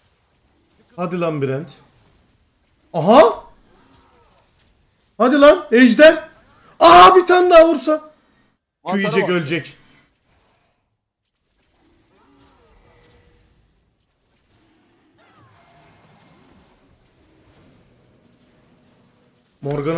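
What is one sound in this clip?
A young man speaks into a close microphone in short, animated bursts.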